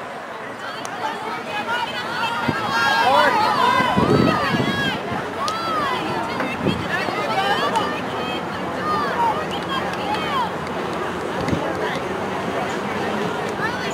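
A crowd of spectators cheers and shouts from a distance, outdoors.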